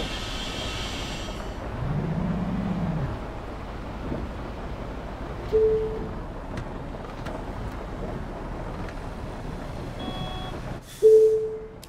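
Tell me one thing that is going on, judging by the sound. A bus engine hums steadily with road noise.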